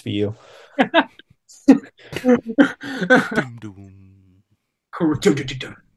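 Men laugh over an online call.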